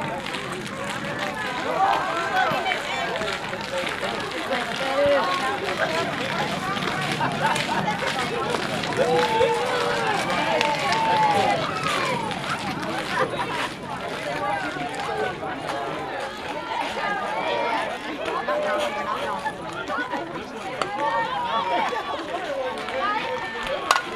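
Young women shout and cheer from around an open field.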